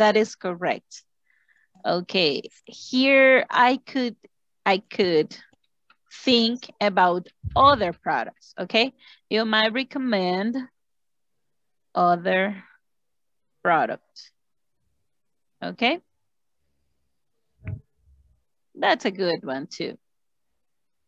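A woman speaks calmly over an online call, pausing now and then.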